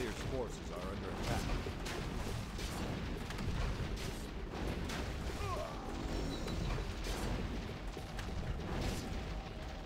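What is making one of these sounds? Game units clash in battle with clanging weapons and spell blasts.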